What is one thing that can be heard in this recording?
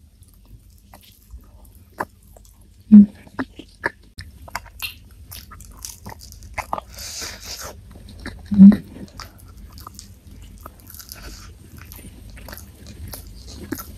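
A young woman chews fried cassava close to a microphone, with wet mouth sounds.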